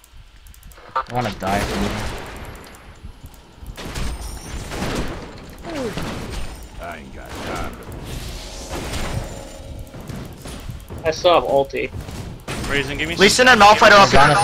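Magic spells blast and weapons clash in a fight.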